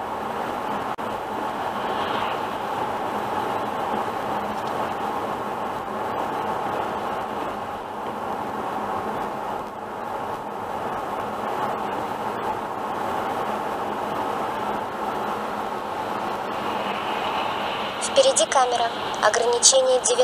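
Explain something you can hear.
A car drives steadily along a road with a constant hum of tyres and engine.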